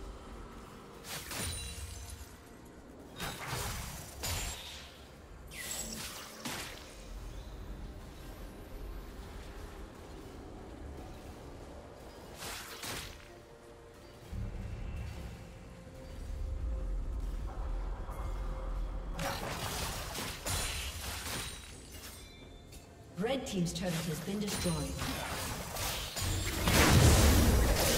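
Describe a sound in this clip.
Game characters clash in combat with sharp hits.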